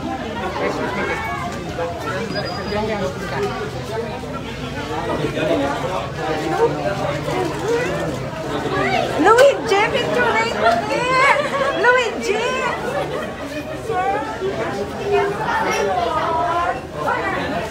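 A crowd of men and women talk over one another outdoors, close by.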